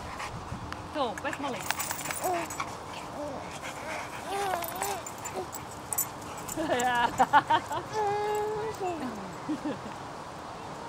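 A woman speaks with animation to dogs close by.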